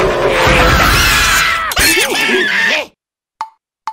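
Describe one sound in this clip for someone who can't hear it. A high, cartoonish male voice screams in panic.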